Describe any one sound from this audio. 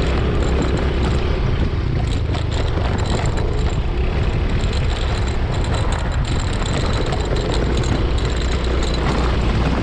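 Tyres crunch over a rough dirt road.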